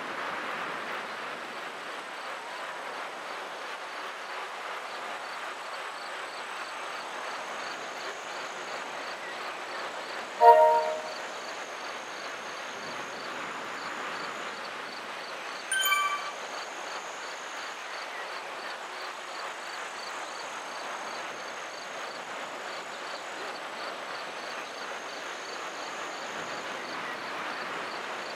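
Bicycle wheels whir steadily on a road.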